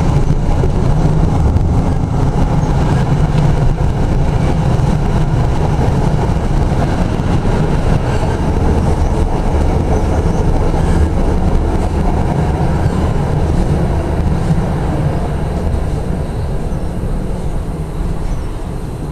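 A tram rumbles along on steel rails.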